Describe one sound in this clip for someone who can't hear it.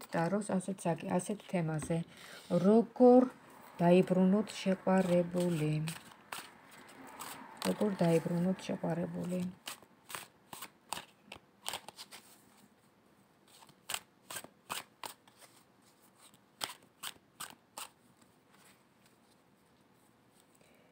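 Cards flick and slap together as a deck is shuffled.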